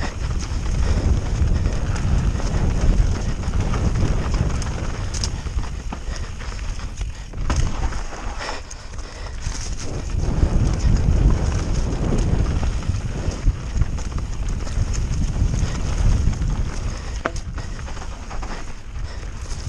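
Bike tyres crunch and rumble over a dirt trail.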